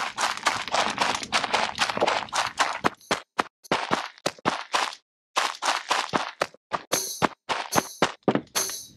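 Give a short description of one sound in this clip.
Quick footsteps patter along a path.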